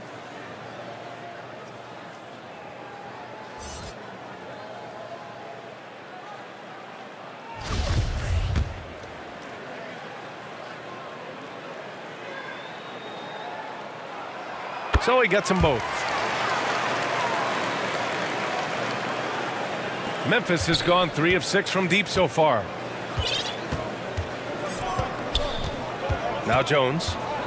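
A crowd murmurs in a large arena, then cheers louder.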